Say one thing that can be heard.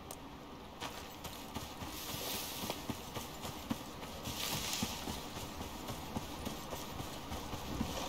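Footsteps swish through dry grass.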